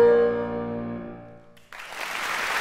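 A wind instrument and a piano play a held closing note in an echoing hall.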